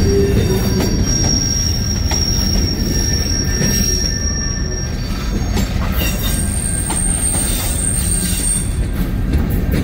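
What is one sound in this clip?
Metal wheels squeal faintly against the rails.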